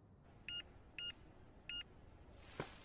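A phone chimes several times with short electronic tones.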